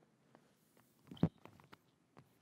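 A person sits down heavily on a wooden floor with a thud.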